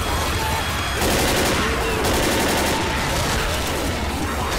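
A rifle fires several rapid shots.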